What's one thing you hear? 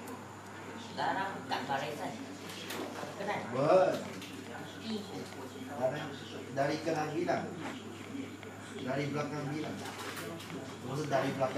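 A small dog whines softly close by.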